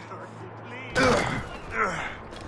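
A heavy thud sounds as someone lands from a jump.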